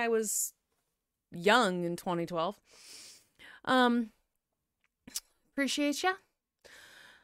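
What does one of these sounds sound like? A young woman speaks close to a microphone, in short bursts.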